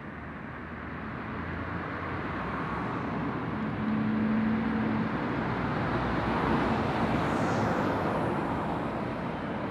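A heavy lorry's engine rumbles as it approaches and passes close by.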